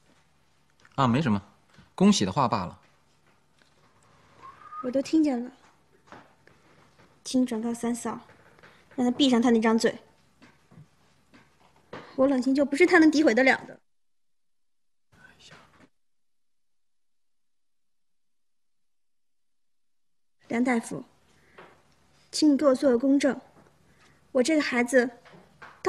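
A young woman speaks quietly and close by.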